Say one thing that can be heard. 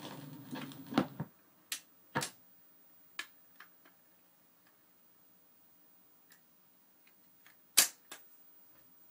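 A record player's tone arm clicks and clunks as it lifts and returns to rest.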